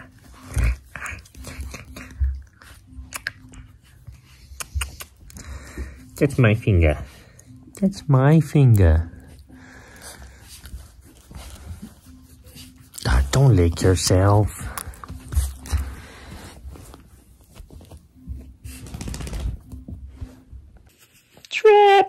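A young woman talks softly up close.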